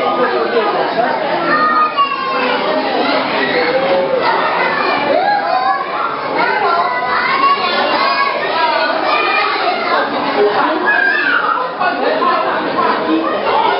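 Many young children chatter and shout throughout.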